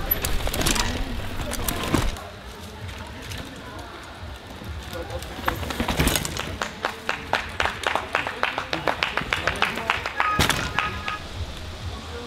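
Bicycles rattle and clatter over bumpy ground.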